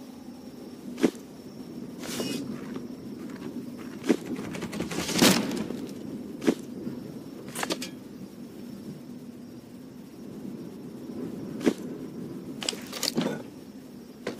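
Short chiming clicks sound now and then as objects are set in place.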